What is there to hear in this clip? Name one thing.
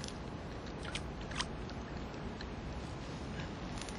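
A fish splashes at the surface of the water close by.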